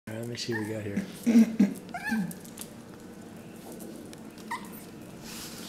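A small dog yips playfully.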